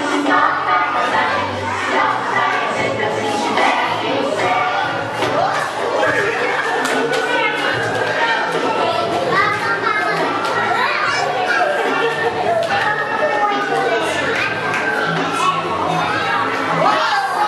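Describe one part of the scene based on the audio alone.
A crowd of adults and young children chatters and calls out nearby.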